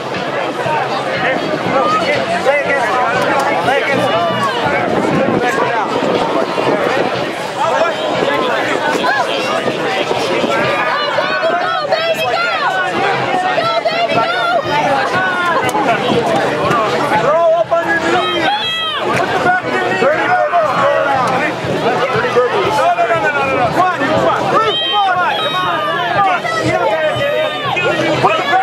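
A crowd of young men and women talks and shouts outdoors close by.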